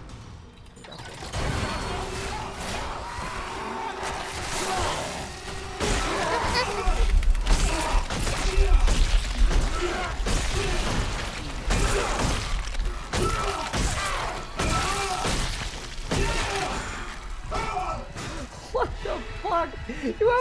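A monster screeches and snarls loudly.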